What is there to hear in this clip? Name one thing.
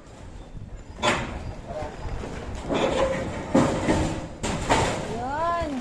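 Metal clanks and bangs overhead.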